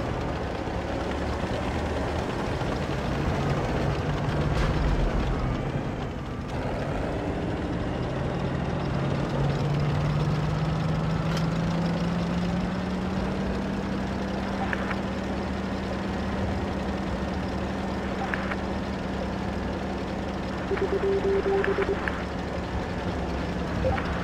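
Tank tracks clatter over rough ground.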